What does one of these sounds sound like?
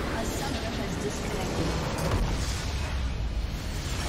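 A game crystal structure explodes with a booming burst.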